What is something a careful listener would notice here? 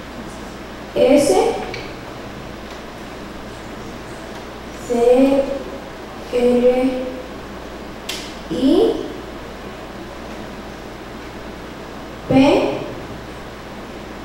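A young girl speaks short words into a microphone over a loudspeaker in an echoing room.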